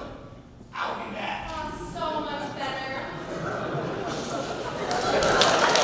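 Young actors speak loudly to each other in a large echoing hall.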